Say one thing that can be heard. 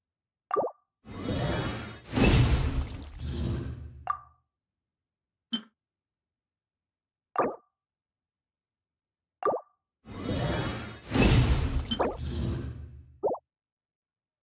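A shimmering magical whoosh swells and fades.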